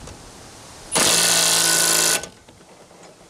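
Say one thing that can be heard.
A small electric motor whirs steadily for a moment.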